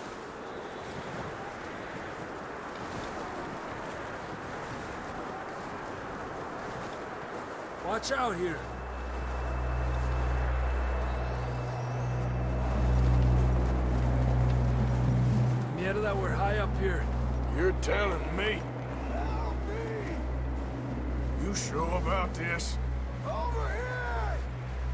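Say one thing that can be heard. Wind blows hard across open snow.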